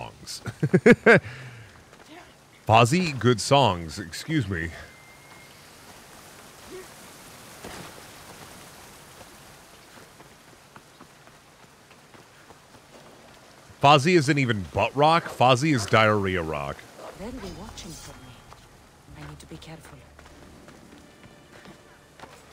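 Footsteps crunch on dry grass and rock.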